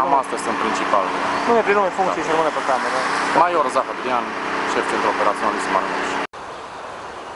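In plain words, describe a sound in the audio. A young man speaks calmly and clearly, close up.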